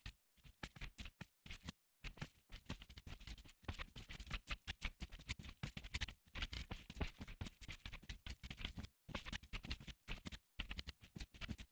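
Blocks are placed with soft, dull thuds.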